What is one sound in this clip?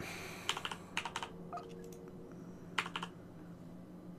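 Soft menu blips click as a selection moves.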